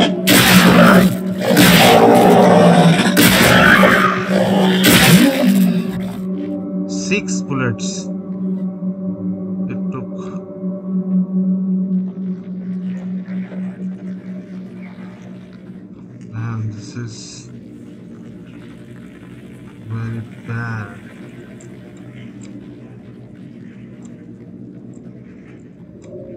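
A low eerie drone hums steadily.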